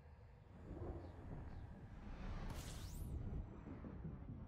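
A rushing whoosh swells and sweeps upward as a spaceship drops out of hyperspace.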